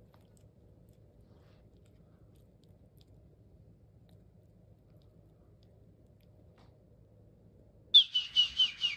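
A puppy gnaws softly on a plush toy.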